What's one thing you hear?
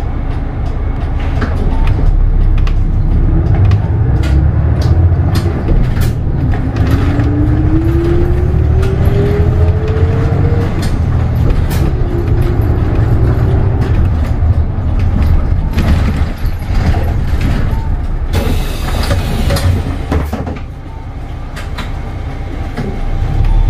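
A bus engine hums low and steady as the bus drives along.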